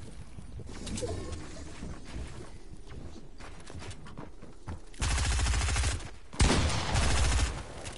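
Wooden walls and ramps clatter as they are built in quick succession.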